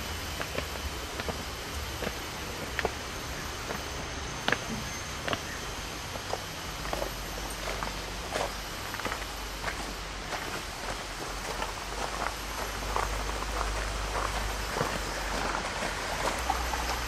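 Footsteps crunch along a path outdoors.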